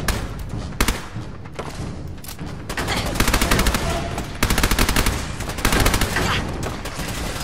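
A heavy gun fires in rapid bursts of loud shots.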